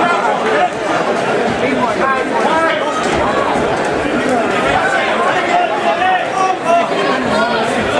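Boxing gloves thump against each other.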